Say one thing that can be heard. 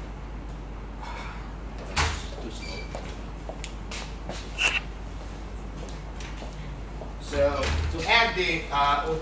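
A man lectures in a room with some echo, heard through a microphone.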